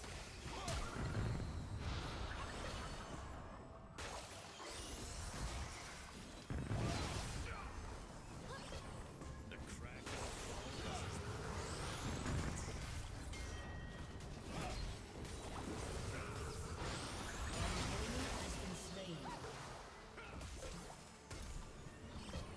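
Game spell effects whoosh, zap and burst in quick succession.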